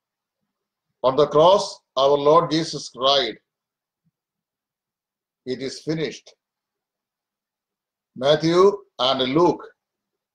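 A middle-aged man speaks calmly and close up, in short phrases with pauses.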